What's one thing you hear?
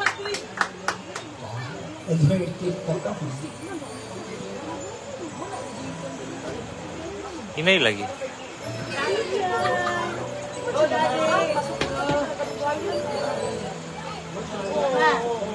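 A young woman sings through a microphone and loudspeakers.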